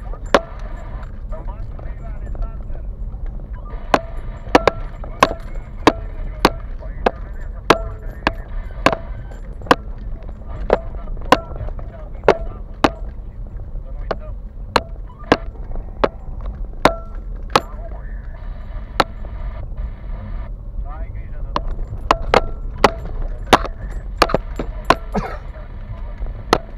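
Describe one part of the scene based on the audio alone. Loose things in the car knock and rattle sharply over bumps.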